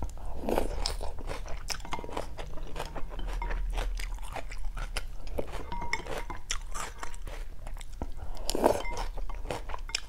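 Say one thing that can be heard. A woman chews wetly and smacks her lips up close.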